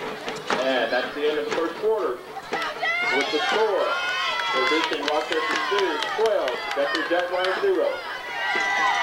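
Young men shout and whoop close by.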